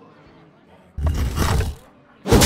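A loud crashing game sound effect bursts out briefly.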